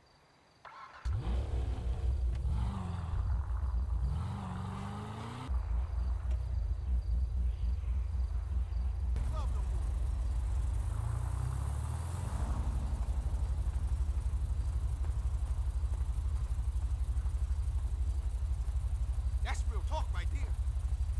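A car engine idles with a deep, throbbing rumble.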